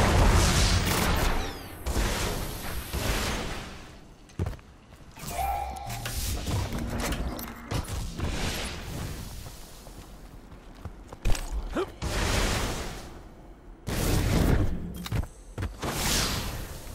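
A futuristic gun fires loud blasts in short bursts.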